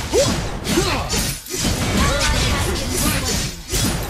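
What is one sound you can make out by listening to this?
Video game fight effects clash and whoosh.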